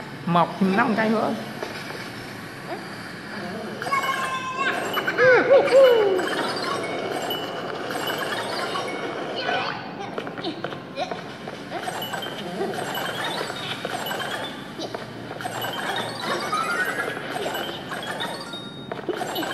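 Game sound effects chime and whoosh.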